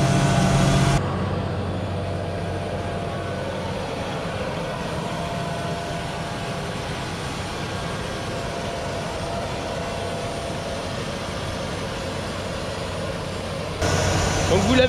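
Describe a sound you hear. A seed drill rumbles and rattles as it is pulled over rough soil.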